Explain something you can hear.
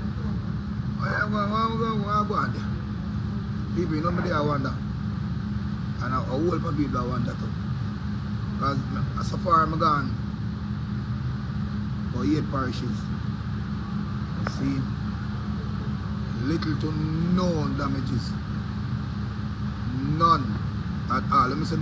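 A man talks with animation close to a phone microphone.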